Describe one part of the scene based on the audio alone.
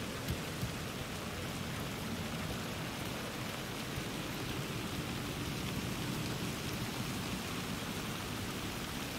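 Steady rain falls and patters outdoors.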